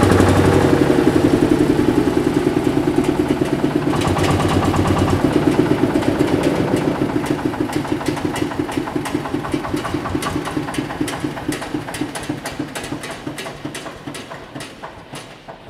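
A small engine chugs loudly nearby, slowing down and fading as it winds down.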